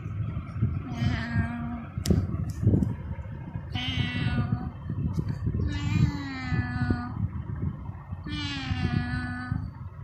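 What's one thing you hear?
A kitten meows loudly several times, in long drawn-out cries.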